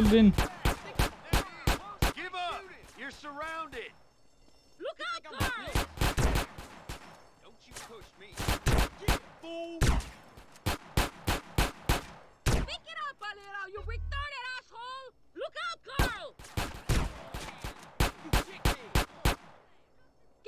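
Pistol shots fire rapidly in quick bursts.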